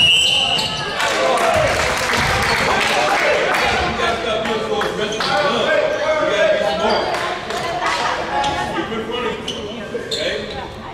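Young players call out to each other in a large echoing gym.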